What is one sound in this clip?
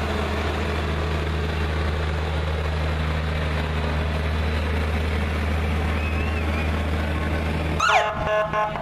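A large truck engine rumbles steadily as the truck rolls past.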